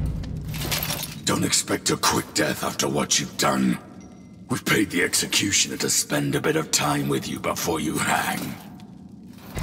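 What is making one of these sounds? A man speaks in a gruff, threatening voice close by.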